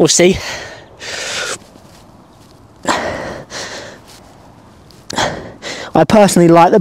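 A young man breathes heavily.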